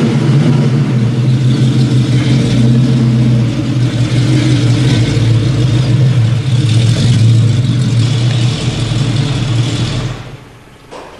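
A car engine idles close by with a deep, steady rumble.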